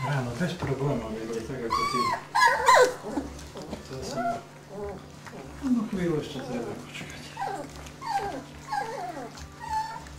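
Puppies crunch dry kibble.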